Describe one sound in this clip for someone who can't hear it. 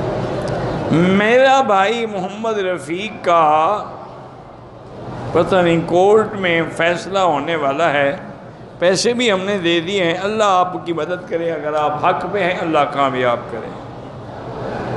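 An elderly man speaks steadily through a microphone in an echoing hall.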